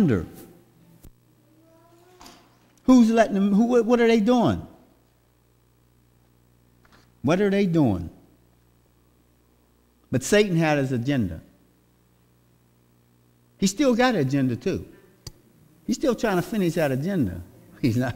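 A man speaks calmly through a microphone, in phrases with pauses, in an echoing hall.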